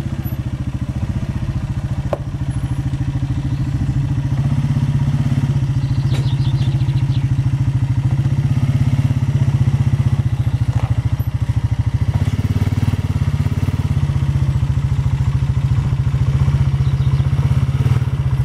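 A quad bike engine idles and revs with a low throbbing rumble.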